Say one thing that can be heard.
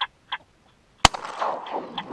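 A shotgun fires a single loud shot.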